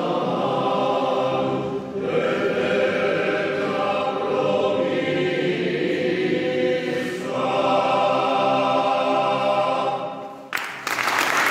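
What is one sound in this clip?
A male choir sings in close harmony, echoing in a large resonant hall.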